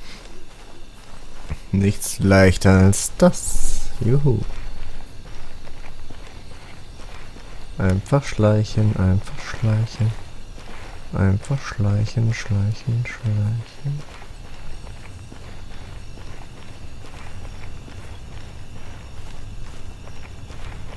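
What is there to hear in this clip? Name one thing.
Footsteps crunch softly on the ground.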